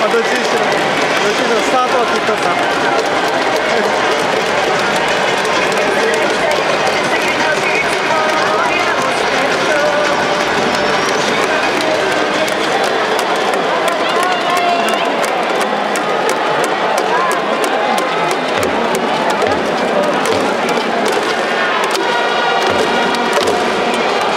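A large stadium crowd chants and cheers loudly, echoing in a big enclosed hall.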